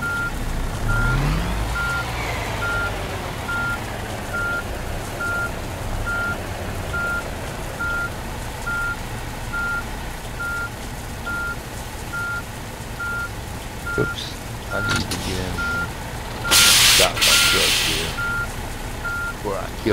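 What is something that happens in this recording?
A truck's reversing alarm beeps steadily.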